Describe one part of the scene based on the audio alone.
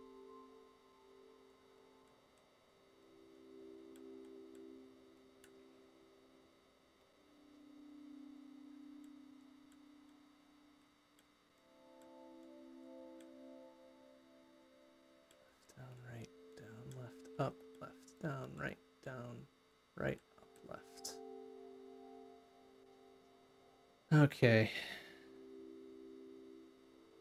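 Soft, calm electronic music plays steadily.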